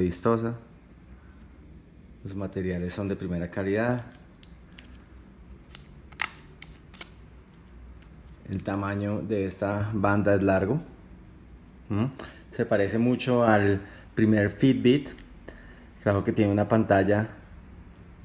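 A plastic watch strap clicks and rubs as it is handled.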